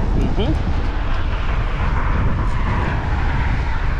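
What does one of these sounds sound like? A fishing reel clicks as it is wound in.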